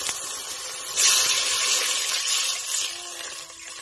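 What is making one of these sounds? Water pours into a hot pot with a loud hiss.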